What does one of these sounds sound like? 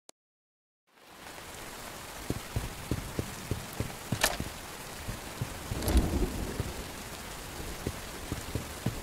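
Game sounds rumble and crackle loudly.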